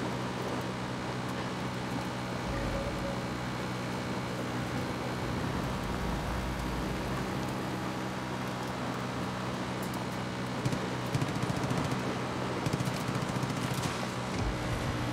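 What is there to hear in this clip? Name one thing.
A quad bike engine hums steadily while riding.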